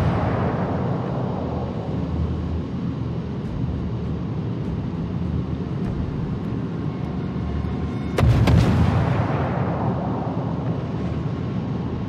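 Water rushes and splashes against a ship's hull.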